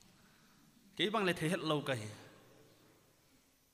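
A man speaks with animation through a microphone, echoing in a large room.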